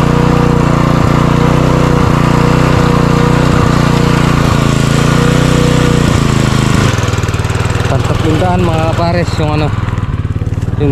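A small petrol engine runs loudly and steadily close by, then drops to a lower idle.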